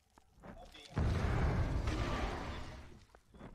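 Fiery explosions boom with a deep rumble.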